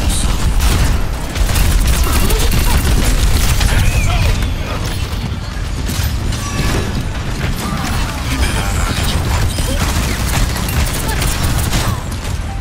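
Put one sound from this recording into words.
Video game guns fire in rapid bursts with explosions.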